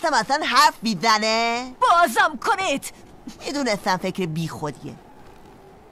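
A boy shouts angrily, close by.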